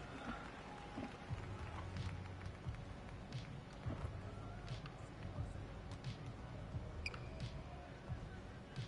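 A basketball bounces repeatedly on a hardwood court.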